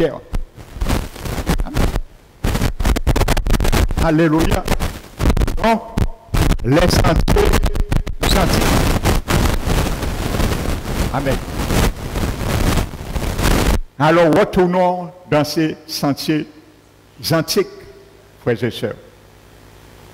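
A middle-aged man speaks with animation through a headset microphone and loudspeakers.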